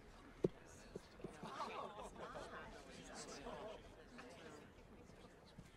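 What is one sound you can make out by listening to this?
A crowd chatters quietly outdoors.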